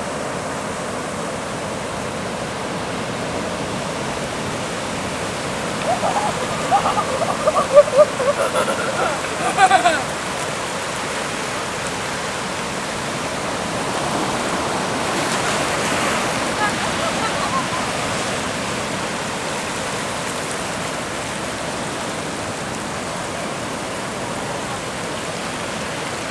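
Waves wash steadily onto a beach outdoors.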